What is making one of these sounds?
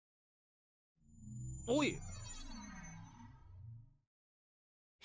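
A magical blast whooshes and shimmers.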